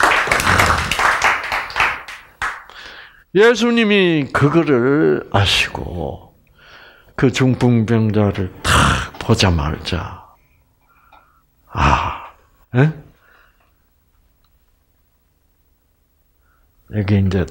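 An elderly man speaks with animation through a microphone, pausing often.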